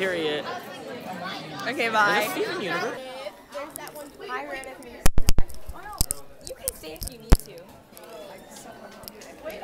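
A young woman talks and laughs close by.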